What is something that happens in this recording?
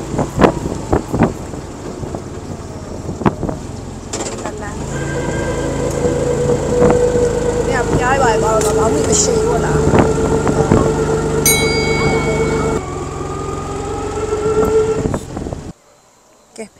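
A vehicle engine drones steadily while driving along a road.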